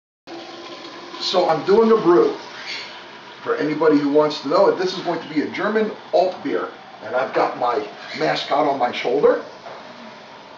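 A middle-aged man talks with animation close to the microphone.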